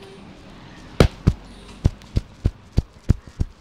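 Hands slap sharply and rhythmically on a man's back.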